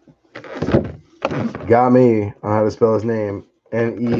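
A plastic case is lifted and turned over.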